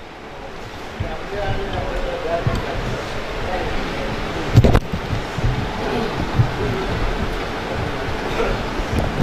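A man speaks calmly into a microphone, heard through loudspeakers.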